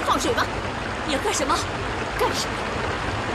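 Another young woman answers calmly and close.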